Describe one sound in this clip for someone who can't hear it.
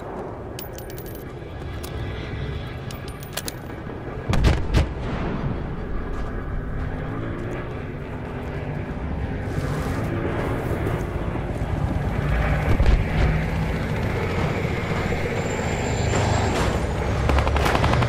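Footsteps run over dry ground.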